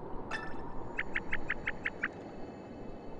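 Short game blips chirp as dialogue text prints out.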